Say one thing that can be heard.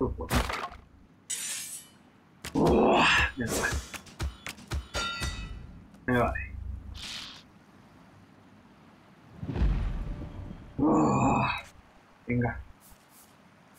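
Cartoonish battle effects whoosh, thump and chime in quick bursts.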